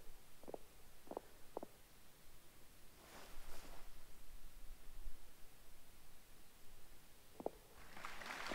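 Heeled shoes click on a hard floor.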